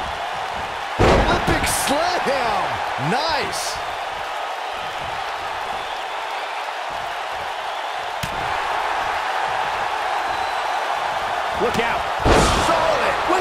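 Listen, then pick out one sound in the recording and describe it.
A body slams hard onto a wrestling mat with a heavy thud.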